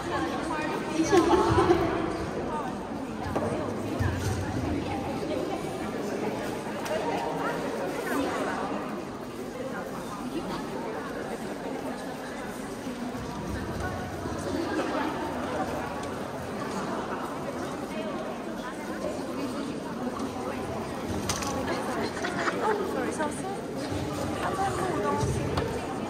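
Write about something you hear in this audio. A crowd of men and women chatter all around in a large echoing hall.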